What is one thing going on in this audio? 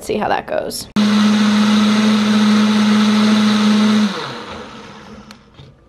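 A blender whirs loudly at high speed, then winds down.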